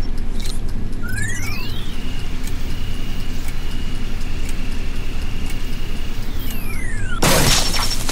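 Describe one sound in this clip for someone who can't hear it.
An electronic device whines with a rising and falling tone as it is tuned.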